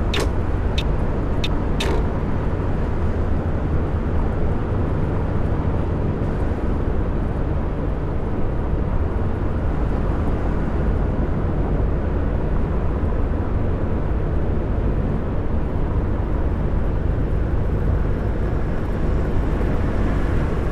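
A bus engine drones steadily while driving on a motorway.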